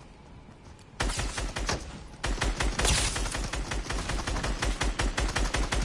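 A gun fires rapid shots close by.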